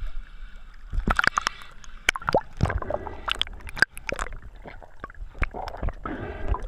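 Muffled underwater clicks and bubbles crackle.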